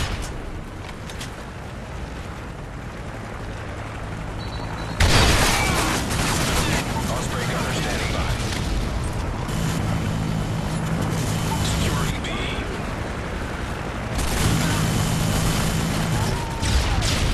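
A submachine gun fires bursts in a video game.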